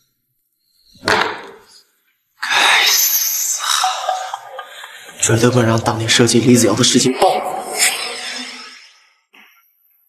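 A young man speaks angrily and close.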